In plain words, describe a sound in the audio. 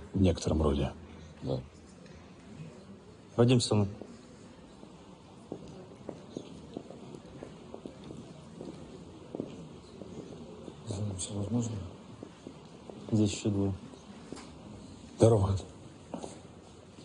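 Men speak tensely, close by.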